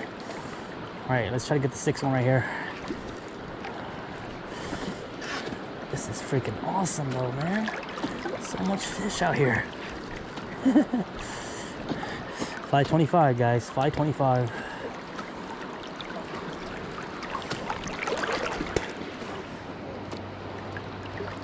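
River water flows and laps steadily nearby.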